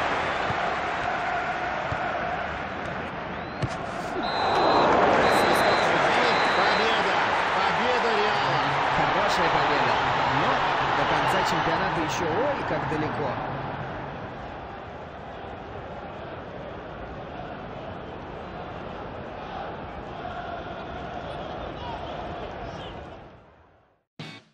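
A large stadium crowd roars and cheers, swelling loudly then slowly easing.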